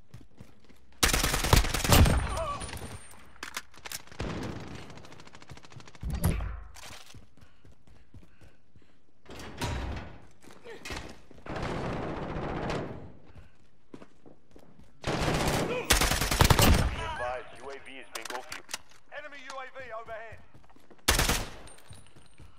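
Gunfire rattles in loud, sharp bursts.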